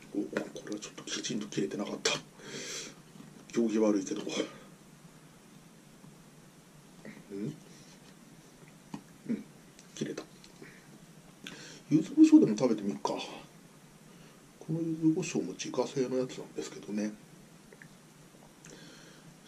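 Chopsticks click and scrape against a plate.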